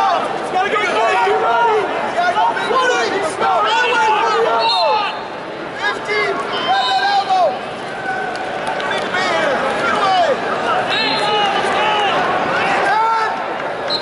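A large crowd chatters and calls out in a big echoing arena.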